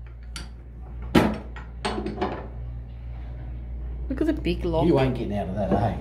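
A metal door latch clicks and scrapes.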